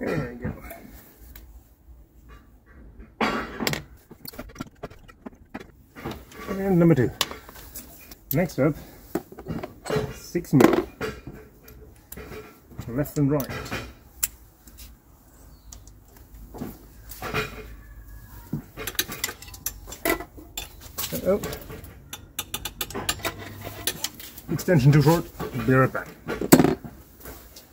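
Small plastic parts click and rattle under a gloved hand.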